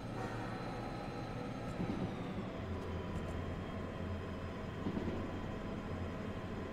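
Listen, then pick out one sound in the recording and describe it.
Train wheels clatter over rails in a tunnel.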